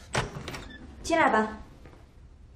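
A woman says a few words from a short way off.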